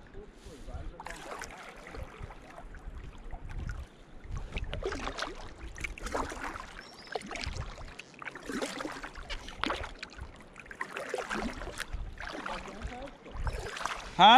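A paddle splashes rhythmically through calm water.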